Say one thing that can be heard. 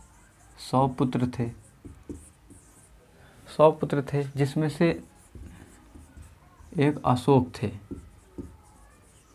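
A young man speaks calmly nearby in short phrases.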